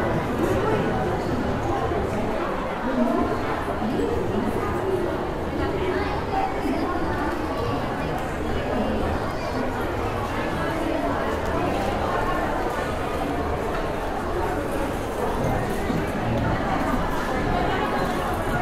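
A crowd of men and women chatter in a busy indoor space.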